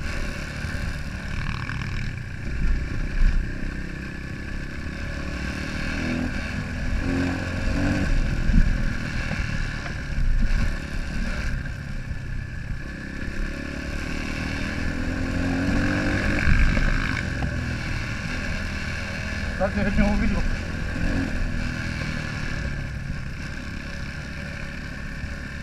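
A motorcycle engine drones steadily close by, rising and falling as the rider speeds up and slows down.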